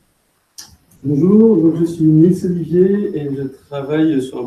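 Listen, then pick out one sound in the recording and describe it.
A man speaks into a microphone through loudspeakers in a large echoing room.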